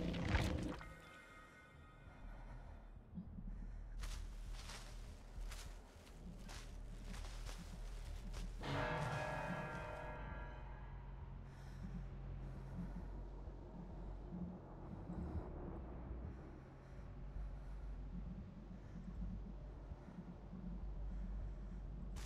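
Leaves rustle as someone crawls through dense plants.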